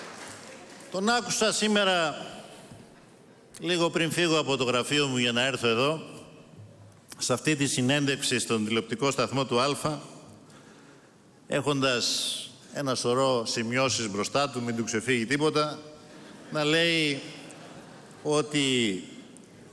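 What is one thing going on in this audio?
A man speaks forcefully into a microphone, his voice echoing through a large hall.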